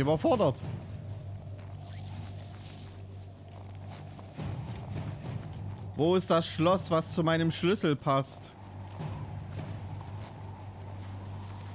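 Footsteps tread on dry, sandy ground.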